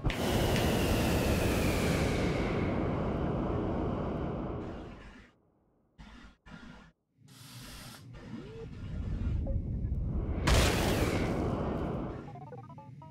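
A rocket engine roars loudly, then fades away.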